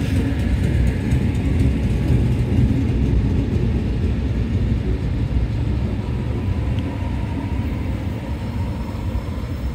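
A train rumbles and clatters past close by on the tracks.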